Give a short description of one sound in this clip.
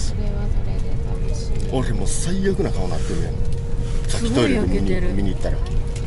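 A man talks close by inside a bus.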